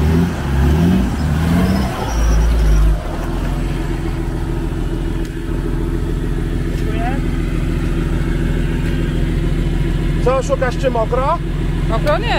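An engine revs hard as a vehicle churns through deep mud.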